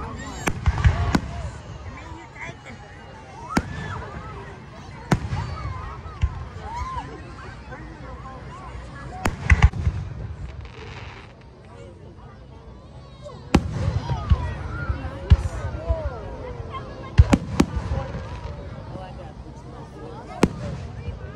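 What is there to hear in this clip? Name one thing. Fireworks crackle and whistle overhead.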